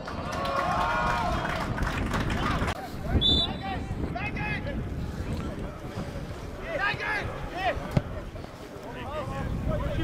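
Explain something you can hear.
Players shout to each other across an open pitch.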